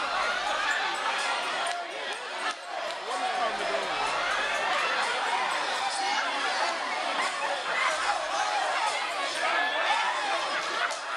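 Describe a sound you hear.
A crowd of young people cheers and shouts loudly in an echoing hall.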